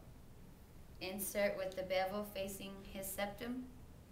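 A young woman speaks calmly and clearly nearby.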